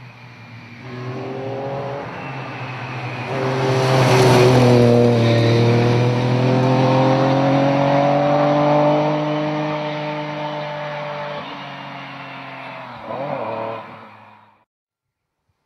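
A rally car roars past at high revs and pulls away into the distance.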